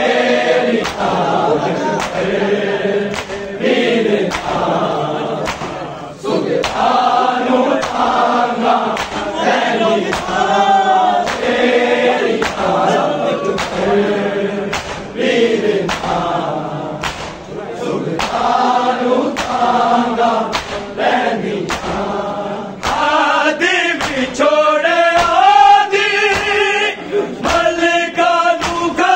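A crowd of men chants together loudly in rhythm.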